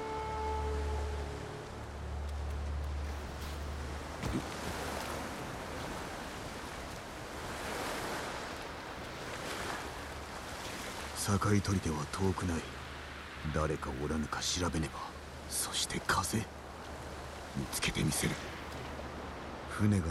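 Strong wind blows steadily in a storm.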